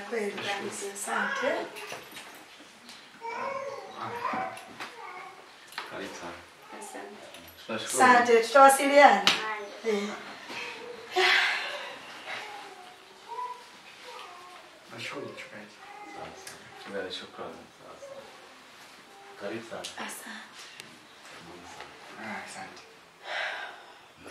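Men and women talk calmly nearby.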